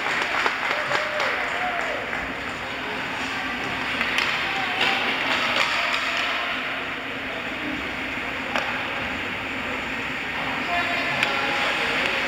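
Hockey sticks clack against a puck now and then.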